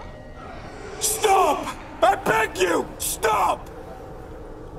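A man pleads desperately in a strained, frightened voice.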